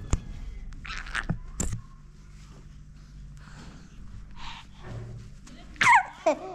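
A baby laughs and squeals close by.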